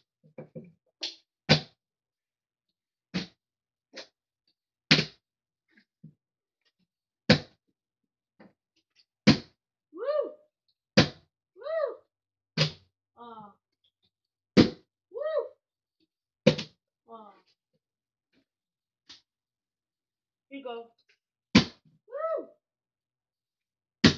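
A plastic water bottle lands with sharp thuds again and again.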